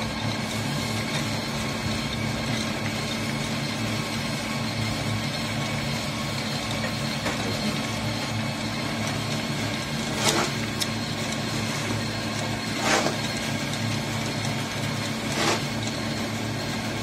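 Granules pour down a mesh chute and patter into a bucket.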